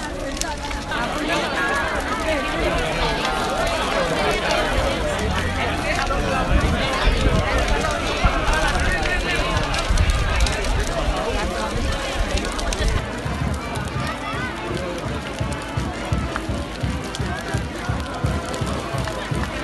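A large crowd chatters and talks outdoors.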